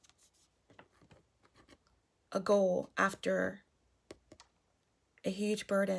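Playing cards slide and rustle against each other.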